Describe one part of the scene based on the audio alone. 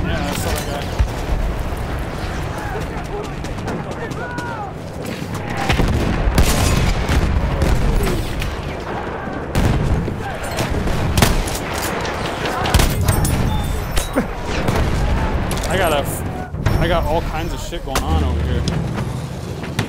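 Battle noise rumbles steadily in the distance.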